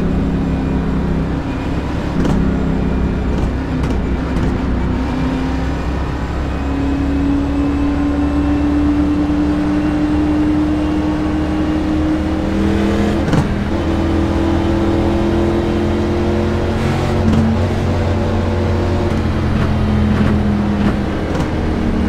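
Other race car engines roar close by.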